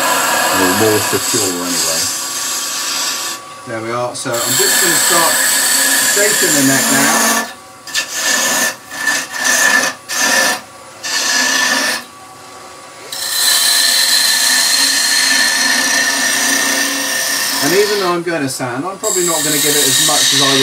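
A chisel shaves wood on a spinning lathe with a loud, rasping hiss.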